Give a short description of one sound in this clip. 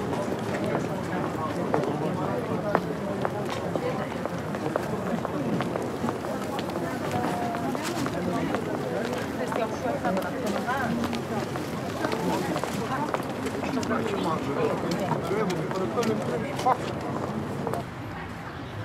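A crowd of people chatter busily outdoors.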